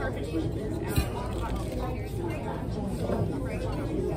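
A woman crunches on a tortilla chip close by.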